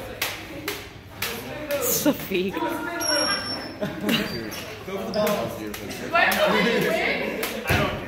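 Plastic toy swords clack together again and again.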